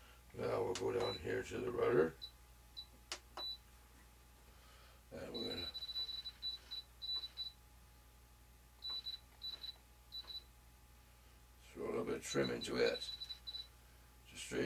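A radio controller beeps with short high tones as its switches are pressed.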